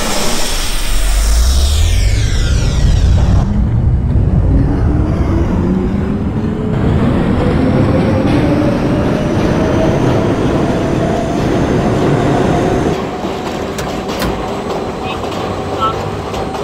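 Steel wheels rumble and clatter over the rails.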